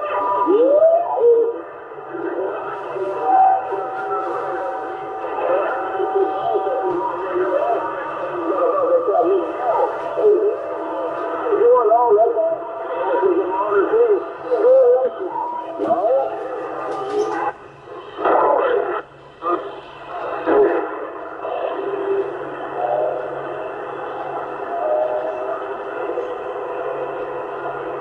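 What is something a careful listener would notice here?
A CB radio receiver hisses with static.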